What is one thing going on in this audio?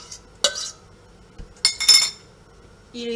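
A spatula scrapes against a metal pan.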